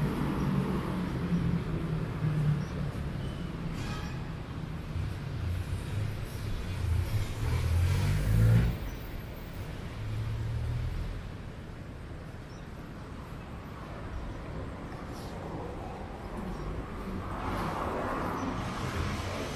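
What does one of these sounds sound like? Light traffic hums along a city street outdoors.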